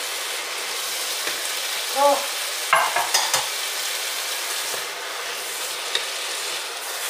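A wooden spoon scrapes and knocks against a pan while stirring.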